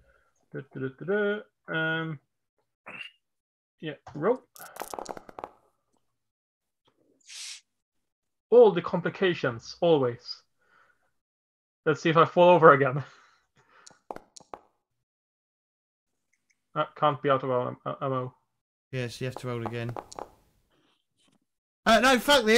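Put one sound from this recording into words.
Men talk with animation over an online call.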